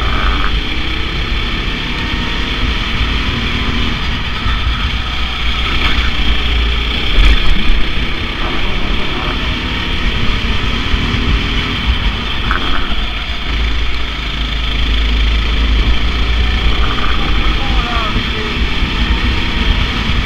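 A go-kart engine buzzes loudly close by.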